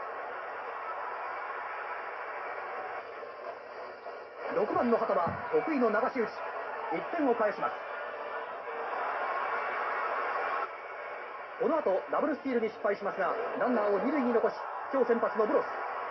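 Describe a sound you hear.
A stadium crowd murmurs and cheers in the background.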